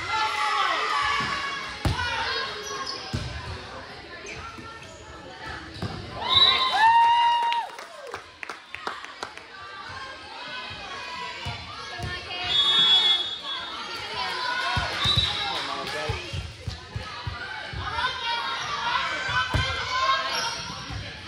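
Girls shout and call out in a large echoing gym.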